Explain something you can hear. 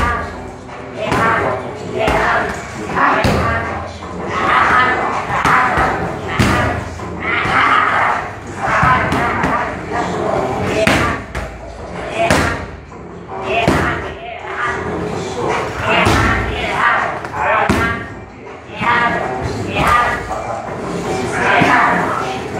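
Punches and kicks thud hard against padded mitts.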